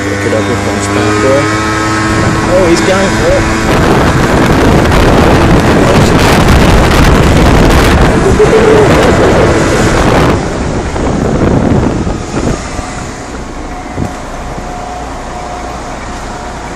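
A moped engine hums as it rides along a street.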